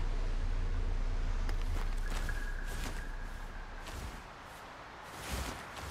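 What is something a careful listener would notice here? Footsteps scrape on rock during a climb.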